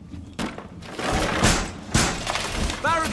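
Wooden boards clatter and knock into place.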